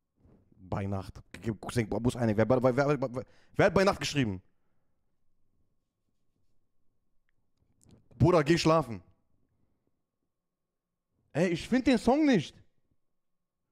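A man speaks with animation into a close microphone, in bursts with pauses.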